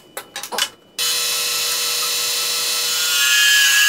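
A wood lathe motor whirs steadily.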